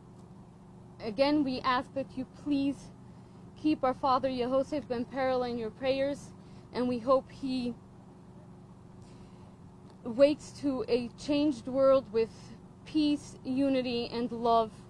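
A young woman speaks emotionally into microphones, pausing between phrases.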